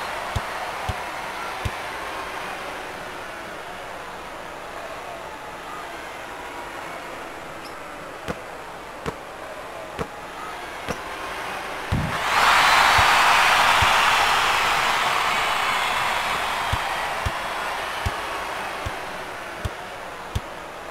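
A basketball bounces on a hardwood floor with dull thumps.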